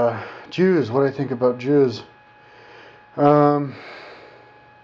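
A man speaks quietly and close by, in a drowsy voice.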